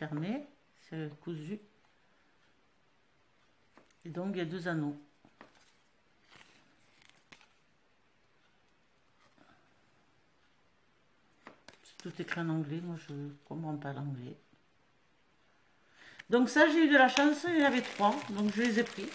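A woman talks calmly close by, in short bursts.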